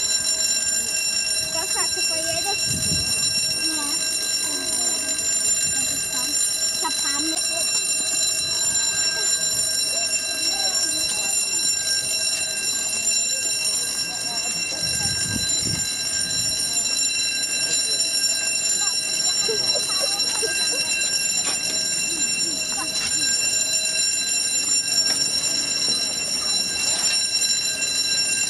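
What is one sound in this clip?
A crowd of men, women and children chatter nearby outdoors.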